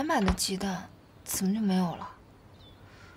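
A young woman speaks quietly and sadly nearby.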